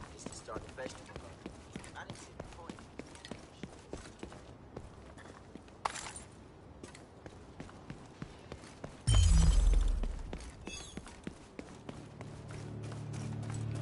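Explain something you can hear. Footsteps patter quickly on pavement.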